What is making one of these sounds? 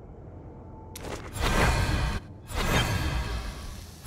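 A magical teleport effect whooshes and rumbles loudly.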